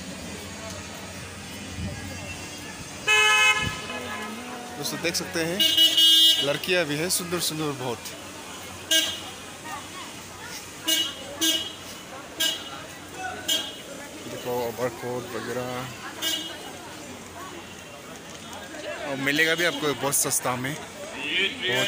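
A busy crowd murmurs and chatters nearby outdoors.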